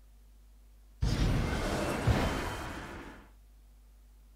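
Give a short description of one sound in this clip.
A louder crashing game sound effect rumbles and fades.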